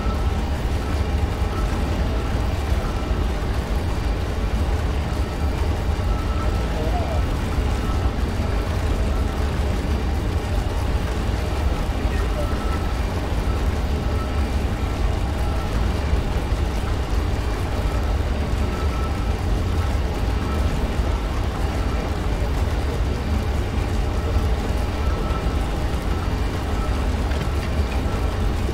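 A low electric hum drones steadily.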